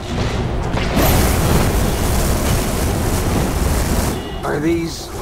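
A flamethrower roars in a steady rush.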